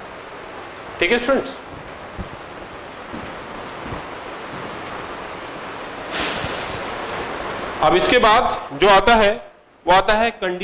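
A man speaks calmly into a clip-on microphone, in short bursts.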